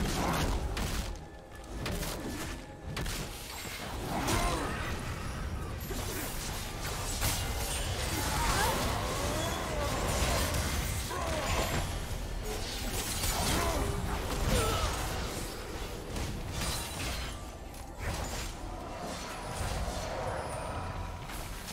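Game spell effects crackle and whoosh during a fight.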